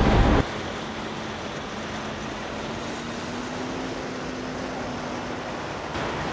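A heavy truck engine idles with a steady low hum.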